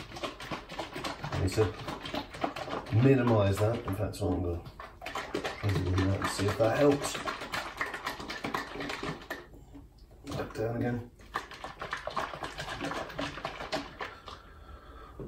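A shaker bottle rattles as it is shaken hard.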